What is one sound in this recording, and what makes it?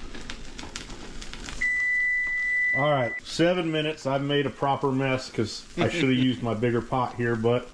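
Boiling water bubbles in a pot.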